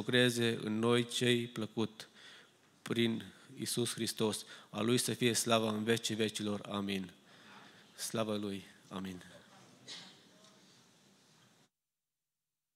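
A middle-aged man speaks calmly into a microphone in an echoing hall.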